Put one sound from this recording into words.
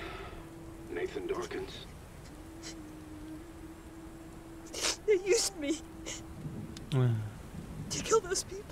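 A young woman speaks softly into a phone.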